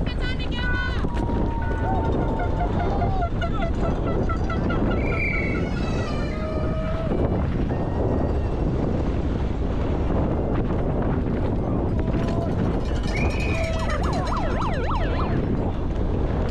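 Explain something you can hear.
Spectators cheer and shout from the trackside.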